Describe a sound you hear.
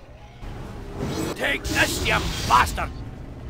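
Battle sounds and a spell burst ring out in a fight.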